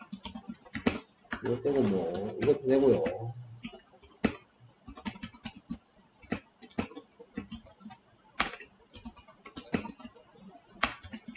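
A keyboard clicks as someone types.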